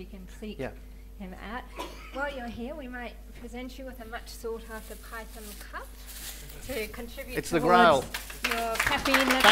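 A woman speaks through a microphone.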